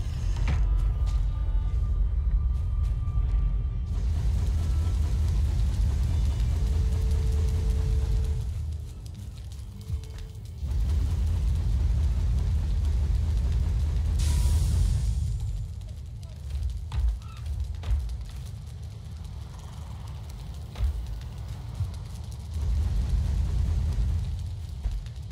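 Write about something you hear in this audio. A fire roars and crackles in a furnace.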